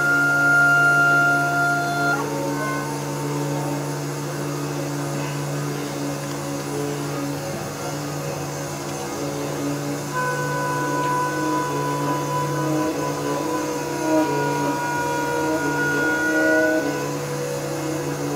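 A saxophone plays long sustained notes in a reverberant room.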